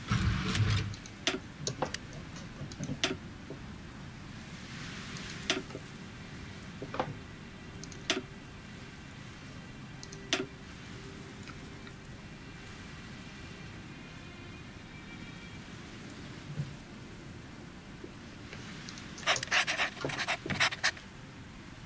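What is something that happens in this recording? Short interface clicks sound as menus open and close.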